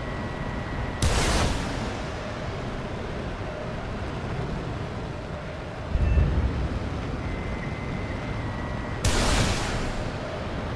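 A missile launches with a sudden loud whoosh, twice.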